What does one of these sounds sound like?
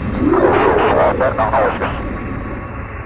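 A launch tunnel whooshes with a rising sweep.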